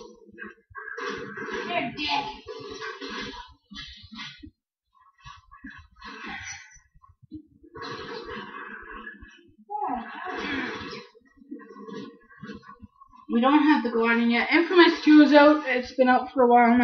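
Video game action noises play through a television speaker.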